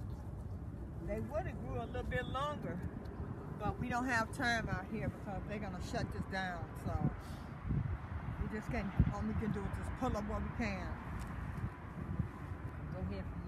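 A mature woman speaks calmly close by.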